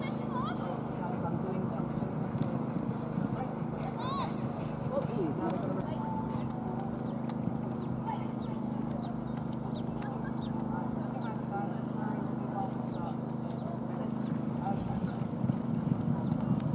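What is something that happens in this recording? Horse hooves thud softly on sand.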